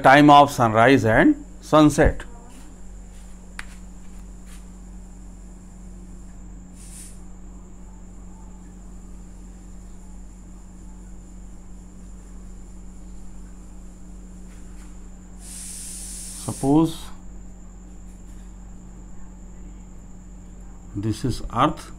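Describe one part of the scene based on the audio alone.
An elderly man explains calmly, close by.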